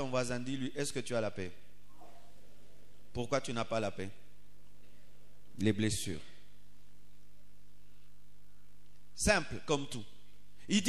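A man speaks through loudspeakers in a large echoing hall, in short bursts.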